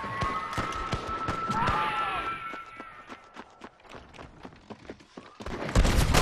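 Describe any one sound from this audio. Boots thud quickly on dry ground as a man runs.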